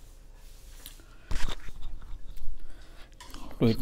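A spoon clinks and scrapes against a plate.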